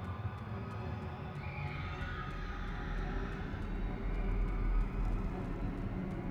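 Quick footsteps tap steadily on a stone floor.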